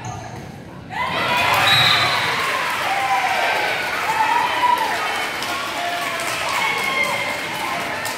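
A crowd of young people cheers loudly.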